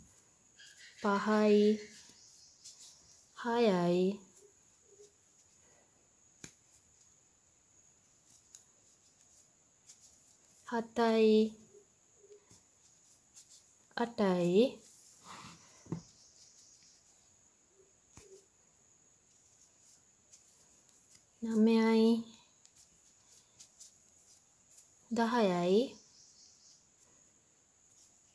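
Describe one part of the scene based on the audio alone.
A crochet hook rubs softly through yarn.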